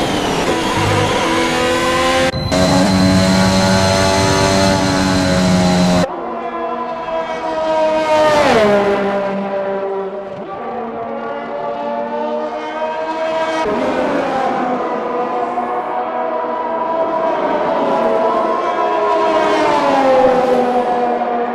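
A racing car engine screams at high revs, its pitch rising and dropping with gear changes.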